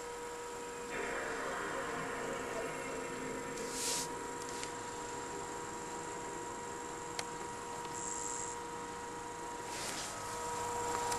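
A startup chime plays from a television speaker.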